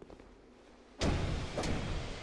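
A fireball bursts with a loud whoosh.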